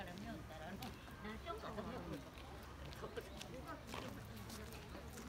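Adults chat quietly nearby outdoors.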